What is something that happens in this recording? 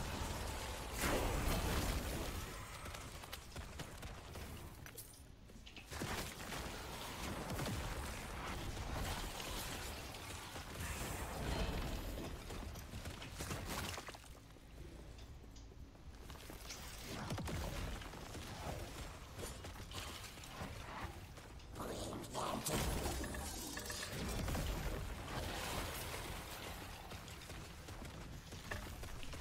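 Game spells crackle and blast with impacts and whooshes.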